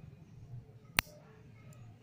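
A nail clipper snaps shut with a sharp click.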